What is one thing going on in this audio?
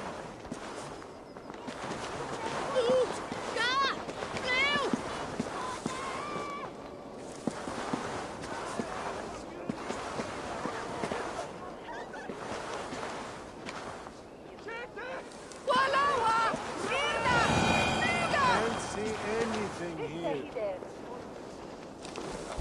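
Soft footsteps rustle through plants.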